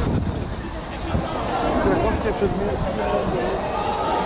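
A man talks on a phone close by.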